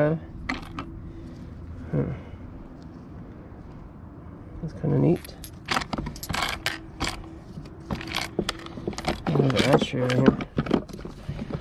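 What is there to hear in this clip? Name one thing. Small metal parts clink and rattle.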